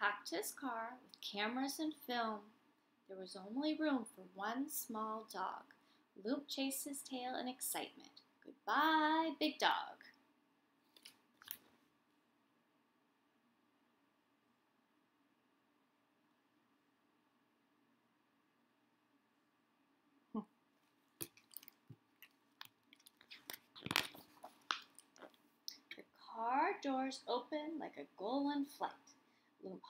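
A woman reads aloud close by, with a lively voice.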